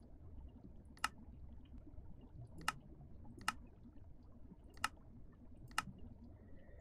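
Soft clicks sound now and then as menu buttons are pressed.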